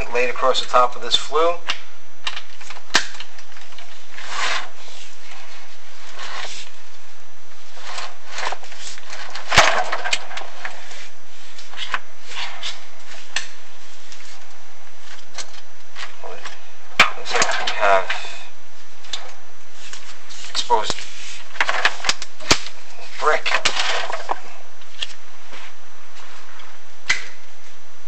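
A hard object scrapes and knocks against rough stone up close.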